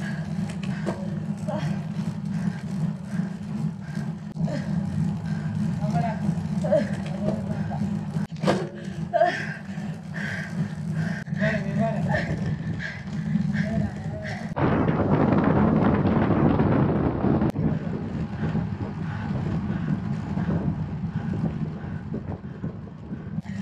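Bicycle tyres hum steadily on an asphalt road.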